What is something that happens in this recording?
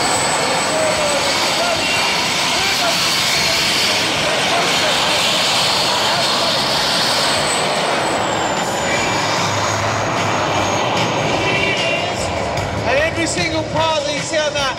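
A jet engine roars loudly with a high whine.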